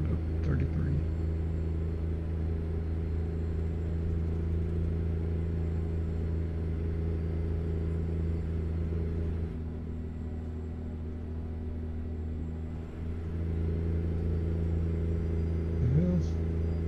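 A truck's diesel engine rumbles steadily, easing off briefly and then pulling again.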